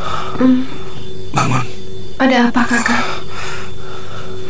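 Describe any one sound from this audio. A woman moans softly, close by.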